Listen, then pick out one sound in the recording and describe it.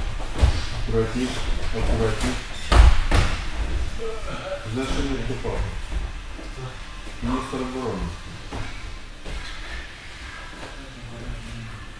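A man speaks calmly in an echoing hall.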